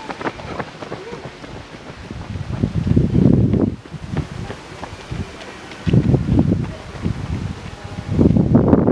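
Running footsteps patter on asphalt close by.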